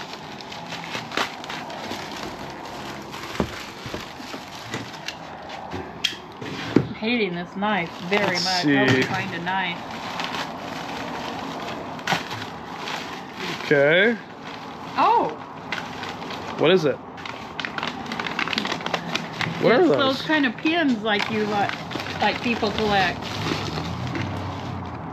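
Paper envelopes rustle and tear as they are opened.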